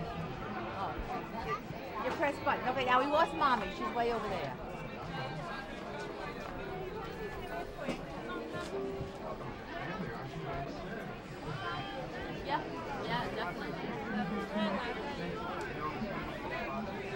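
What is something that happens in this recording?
A crowd murmurs and chatters in a busy indoor space.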